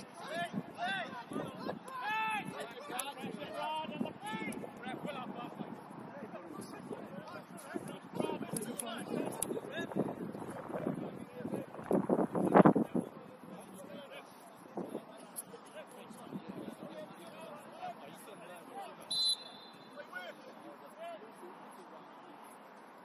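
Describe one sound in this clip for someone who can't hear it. Young men shout and call to each other across an open field, heard from a distance.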